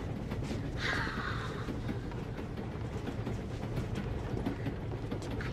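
A train rumbles steadily.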